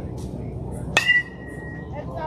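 A baseball smacks sharply into a catcher's mitt with a short ringing.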